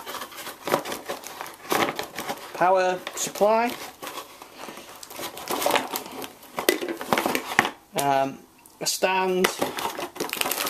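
Cardboard packaging rustles and scrapes close by.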